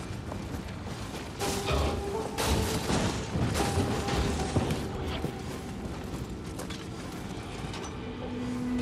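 Heavy footsteps thud on a wooden floor.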